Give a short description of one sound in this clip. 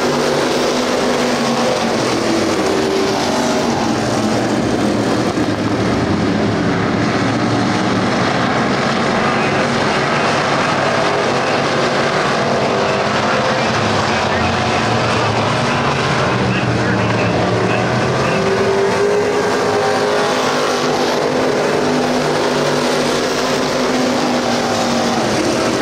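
Race car engines roar loudly, rising and falling in pitch.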